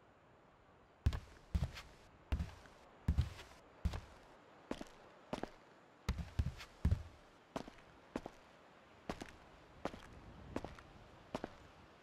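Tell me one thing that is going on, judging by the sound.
Footsteps thud slowly on a creaky wooden floor.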